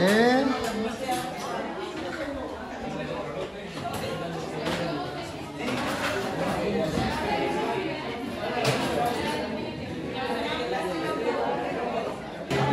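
A band plays lively music with accordion, guitar and bass.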